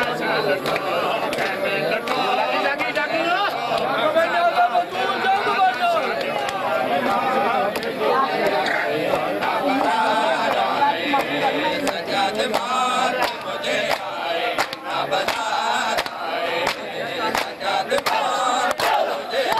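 Men beat their chests with their hands in rhythm.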